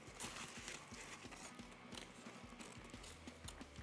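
Paper wrapping crinkles and rustles.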